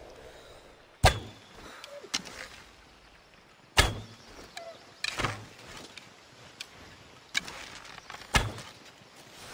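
A bowstring twangs as arrows are shot.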